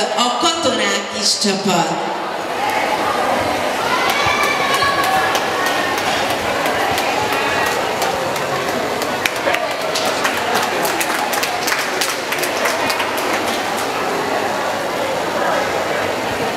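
A crowd chatters and cheers loudly in a large echoing hall.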